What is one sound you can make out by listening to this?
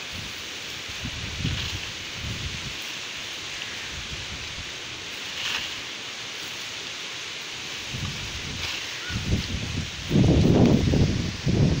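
Leaves rustle as a long pole pokes through a tree's branches.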